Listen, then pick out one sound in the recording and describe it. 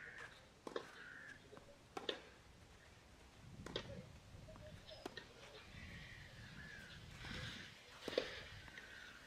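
Tennis rackets strike a ball back and forth in a rally.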